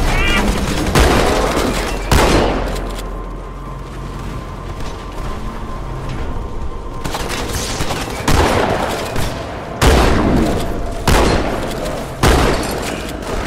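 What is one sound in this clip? A rifle fires loud bursts of shots.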